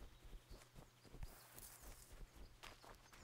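Leafy branches rustle and brush past.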